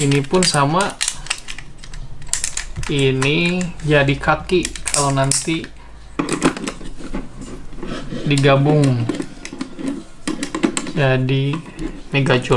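Plastic parts of a toy click and rattle as they are handled.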